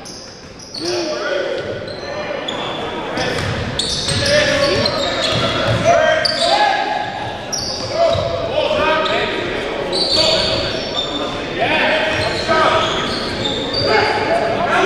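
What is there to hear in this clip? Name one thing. Sneakers squeak sharply on a wooden gym floor in a large echoing hall.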